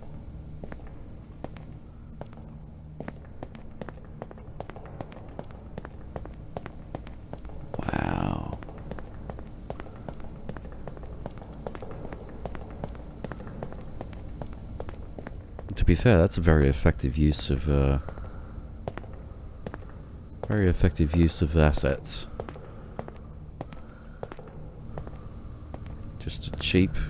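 Footsteps tap steadily on a hard tiled floor in a large echoing hall.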